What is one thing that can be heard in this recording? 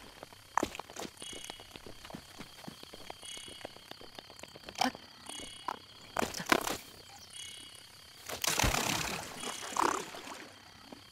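Quick footsteps patter over grass and stone.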